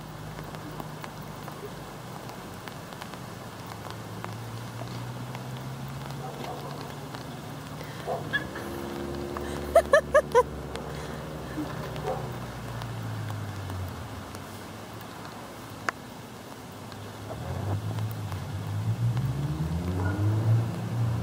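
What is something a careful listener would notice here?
A car engine hums while driving and rises in pitch as it speeds up.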